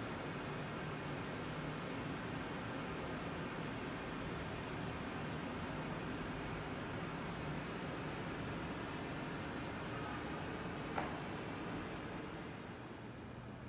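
A train idles with a low steady hum beside a platform.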